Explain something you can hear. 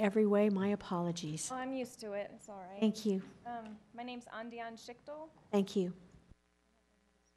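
A woman speaks with animation through a microphone in a large room.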